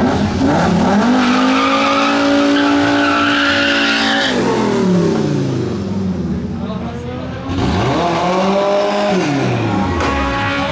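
A car engine revs hard and loud, rising and falling in pitch.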